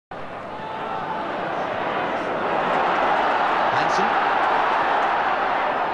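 A large stadium crowd roars, swelling louder.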